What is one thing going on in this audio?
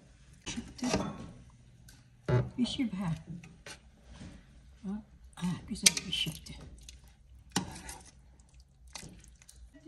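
A spoon stirs and scrapes in a pot of simmering stew.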